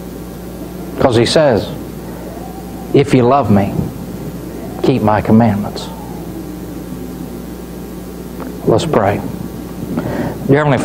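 A man speaks slowly and forcefully in short bursts with long pauses, in an echoing hall.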